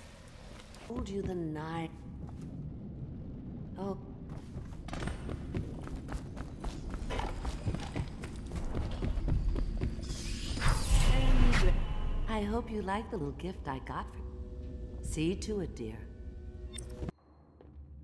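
An elderly woman speaks in a raspy, eerie voice.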